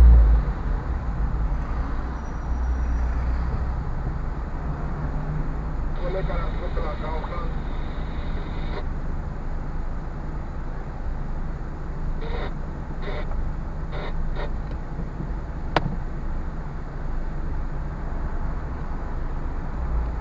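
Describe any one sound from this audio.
A car engine idles with a low hum inside the cabin.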